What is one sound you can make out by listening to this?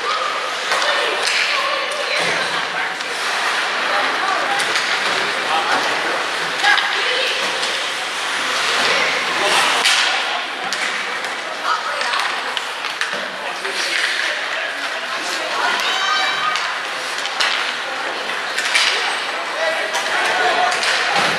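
Hockey sticks clack against a puck and each other on ice.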